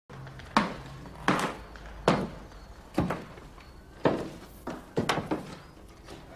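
Footsteps knock slowly on a hard floor.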